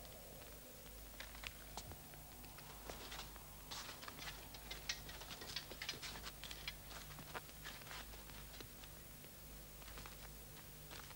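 Footsteps and clothes rustle faintly.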